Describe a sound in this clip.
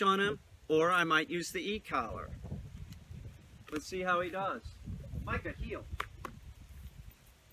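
A middle-aged man talks calmly nearby, outdoors.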